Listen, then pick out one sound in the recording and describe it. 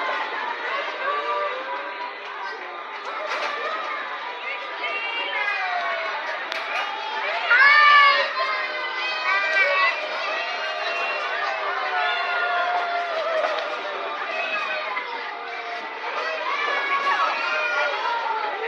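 Cheerful carousel organ music plays steadily throughout.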